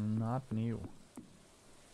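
A young man speaks close to a microphone with animation.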